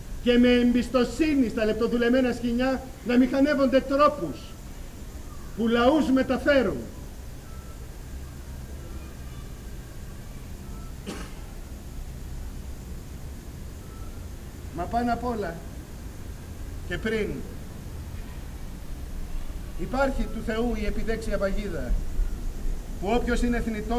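A man sings in short, sustained phrases from a stage, heard at a distance in a large hall.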